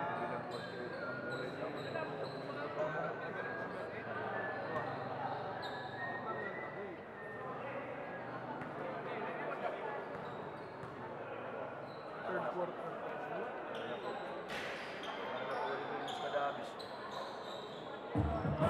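A crowd murmurs and chatters throughout a large echoing gym.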